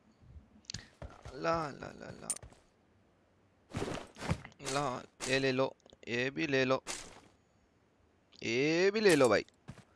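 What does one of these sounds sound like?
Items click as they are picked up.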